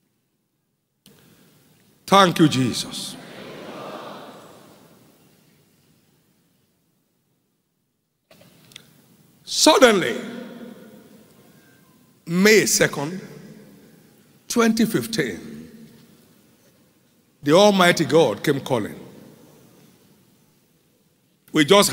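A man preaches forcefully through a microphone in a large echoing hall, in loud bursts with pauses.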